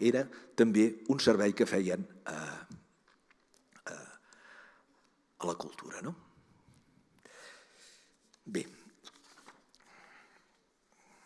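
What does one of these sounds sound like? An elderly man speaks calmly into a microphone, lecturing with pauses, heard over an online call.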